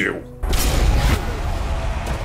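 A heavy blade slashes and thuds into a body.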